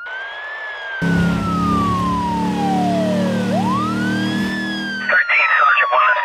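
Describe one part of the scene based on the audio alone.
A car engine roars.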